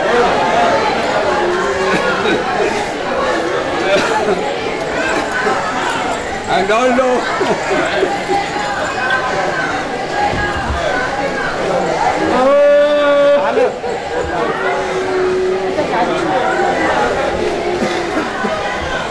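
A crowd of men chant and call out loudly all around.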